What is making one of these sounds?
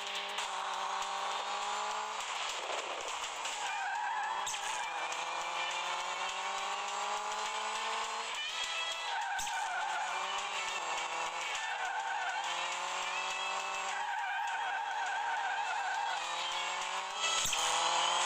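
A rally car engine revs up through the gears.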